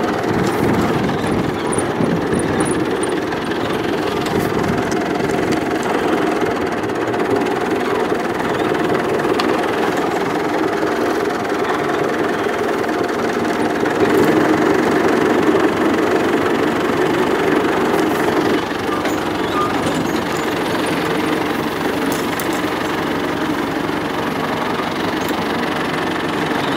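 A tractor engine chugs steadily up close.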